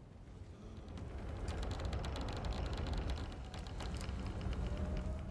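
A heavy door grinds slowly open.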